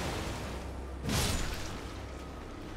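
A heavy creature crashes through water with a loud splash.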